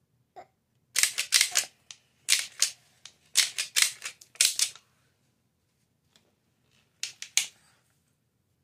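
A toddler giggles and laughs in short breathy bursts close by.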